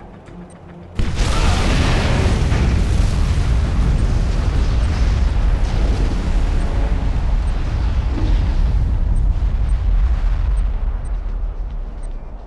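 A huge explosion booms and rumbles, slowly fading.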